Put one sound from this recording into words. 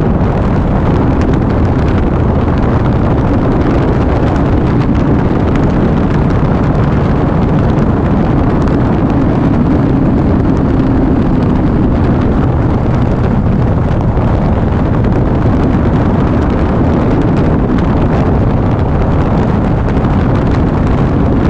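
A motorcycle engine hums steadily as it cruises along.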